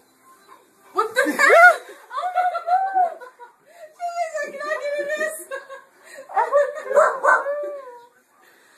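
A young woman speaks excitedly close by.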